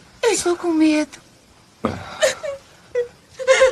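Young girls laugh and squeal excitedly.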